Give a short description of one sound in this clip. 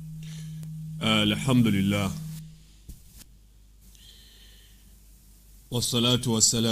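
A man speaks calmly into a close microphone.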